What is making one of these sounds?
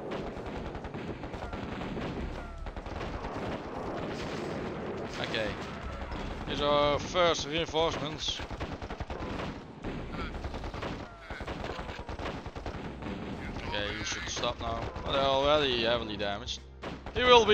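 Gunfire and explosions crackle in a battle.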